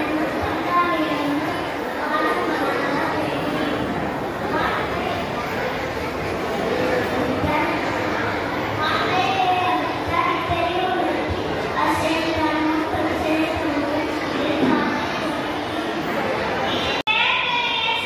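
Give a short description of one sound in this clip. A young boy speaks with animation into a microphone through loudspeakers in an echoing hall.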